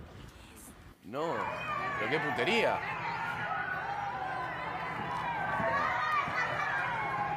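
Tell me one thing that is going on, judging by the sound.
A crowd of children shouts and cheers excitedly.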